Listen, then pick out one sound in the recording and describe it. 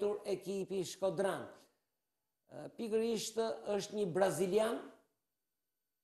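A middle-aged man speaks calmly and close to microphones.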